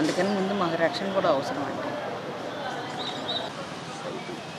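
A middle-aged woman speaks firmly into microphones close by.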